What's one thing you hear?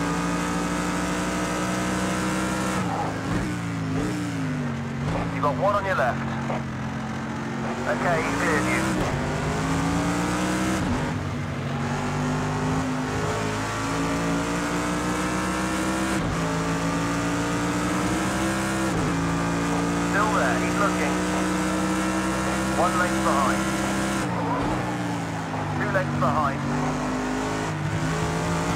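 A racing car engine roars steadily, its pitch rising and dropping with each gear change.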